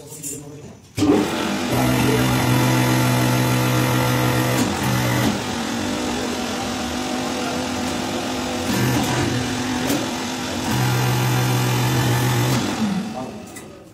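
A hydraulic press motor hums loudly and steadily.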